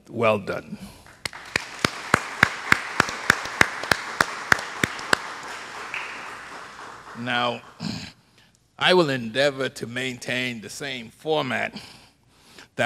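A man speaks with animation through a microphone in an echoing hall.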